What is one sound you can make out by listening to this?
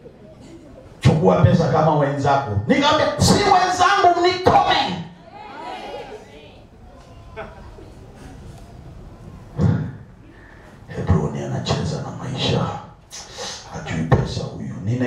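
A man preaches with animation into a microphone, heard through loudspeakers in an echoing hall.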